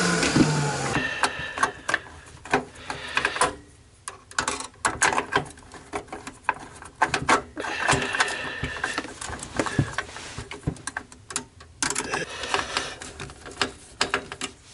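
Plastic parts click and rattle as hands work inside a computer case.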